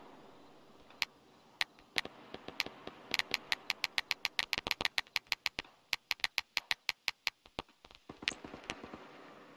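Distant gunfire crackles in rapid bursts.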